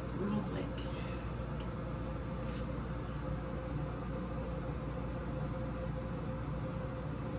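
Hands rustle and tug through hair close by.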